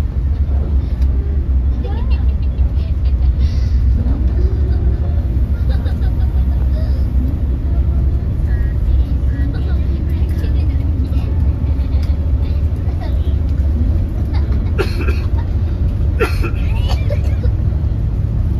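An engine rumbles low and steady throughout.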